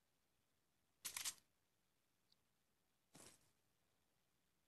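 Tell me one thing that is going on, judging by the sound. A short rustling game sound effect plays twice.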